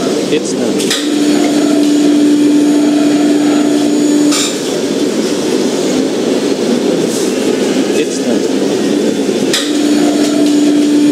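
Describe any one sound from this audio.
A tow truck beeps steadily as it backs up.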